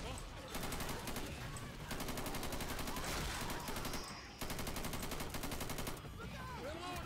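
An automatic rifle fires rapid bursts up close.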